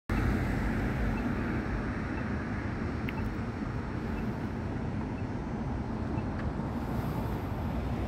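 A car rumbles steadily as it drives along a road.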